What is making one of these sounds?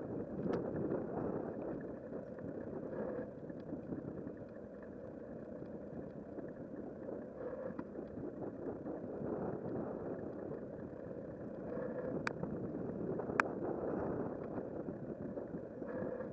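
Bicycle tyres roll steadily over a paved path.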